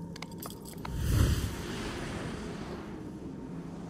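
A deep, rumbling whoosh swells up and slowly dies away.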